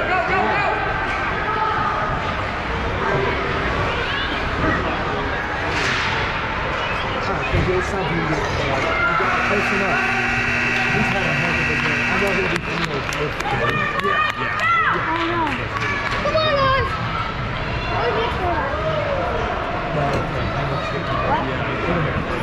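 Young players shout and call out across a large echoing rink.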